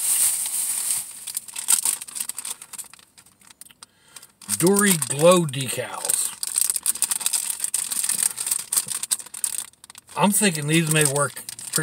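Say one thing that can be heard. A plastic wrapper crinkles in a man's hands.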